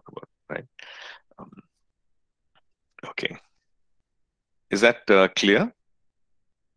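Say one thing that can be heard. A middle-aged man speaks calmly in short bursts over an online call.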